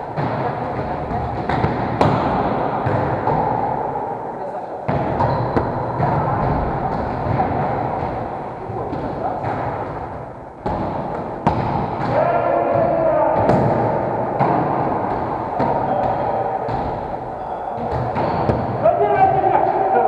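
Volleyballs thump against hands and bounce on a wooden floor in a large echoing hall.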